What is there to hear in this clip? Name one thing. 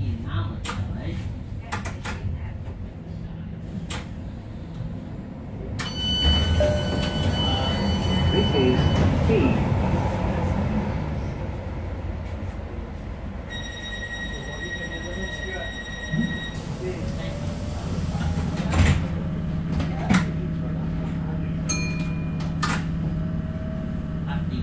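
A light rail metro car rumbles along the track, heard from inside.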